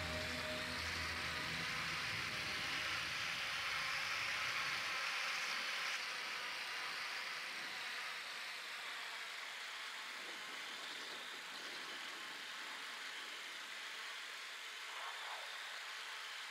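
A small drone hums steadily overhead.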